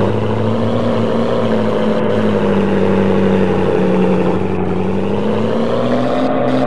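A car engine hums steadily and shifts in pitch as the car drives.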